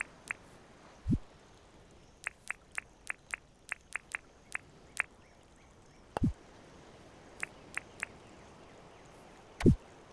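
A deep soft thud sounds now and then.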